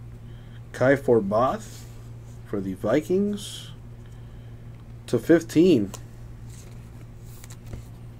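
A plastic sleeve crinkles as a card is slipped inside.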